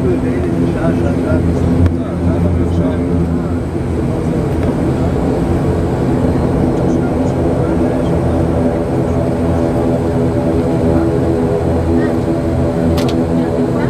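Tyres rumble on a runway as an airliner taxis.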